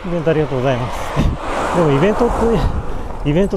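A van passes by in the other direction with a brief whoosh.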